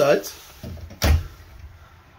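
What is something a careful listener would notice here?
A cabinet door clicks open.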